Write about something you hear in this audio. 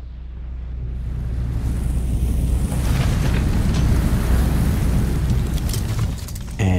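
Fire roars and crackles nearby.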